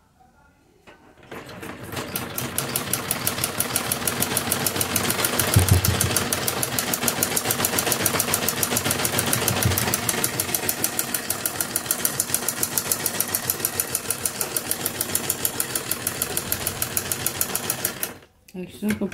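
A sewing machine runs with a fast, steady clatter.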